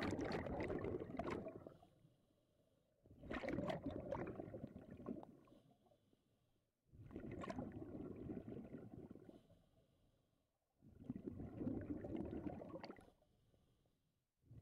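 Exhaled bubbles gurgle and rumble from a scuba regulator underwater in bursts.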